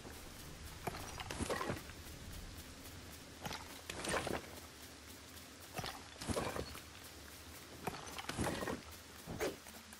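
A pickaxe strikes stone in repeated blows.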